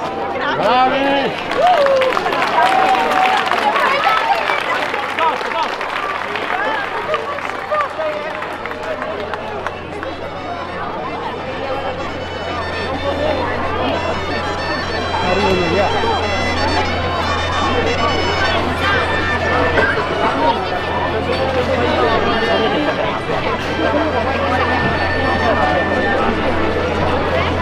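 A lively crowd of men and women chatters and calls out all around, outdoors.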